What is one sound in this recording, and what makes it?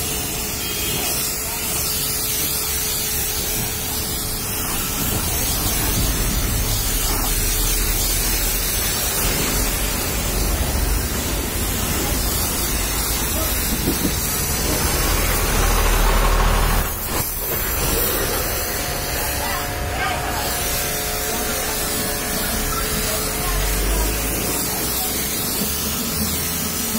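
Water splashes onto wet ground.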